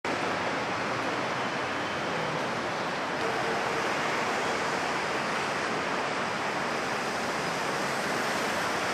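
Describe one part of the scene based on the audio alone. A busy city street rumbles and hums steadily outdoors.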